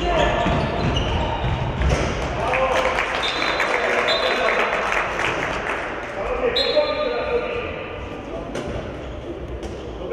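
A handball thuds and bounces on the floor.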